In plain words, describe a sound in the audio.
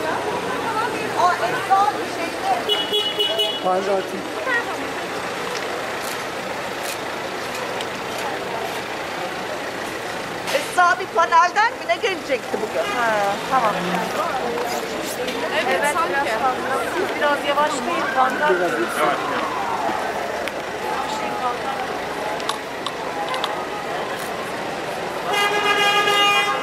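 Traffic hums steadily in the background.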